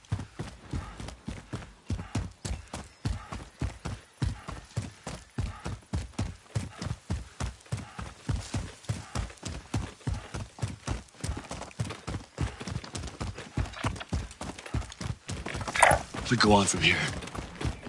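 Footsteps run quickly and steadily over dirt and grass.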